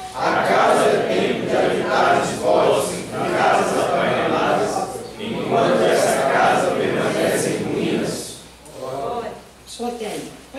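A young woman speaks calmly into a microphone, heard through a loudspeaker.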